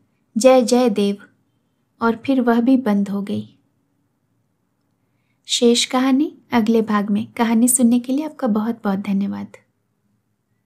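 A woman reads aloud calmly and clearly, close to a microphone.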